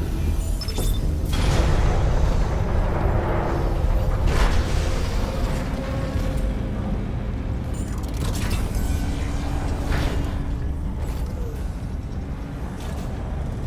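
Heavy metal footsteps clank on a metal walkway.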